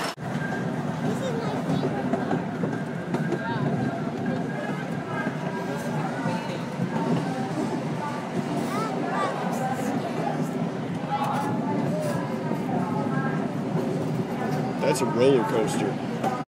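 A man talks close by.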